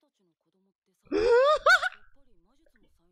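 A young man exclaims loudly into a microphone.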